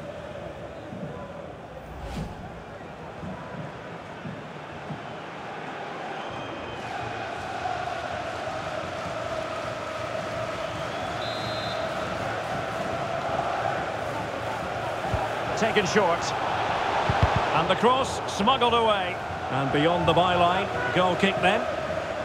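A large stadium crowd roars steadily, and the roar swells toward the end.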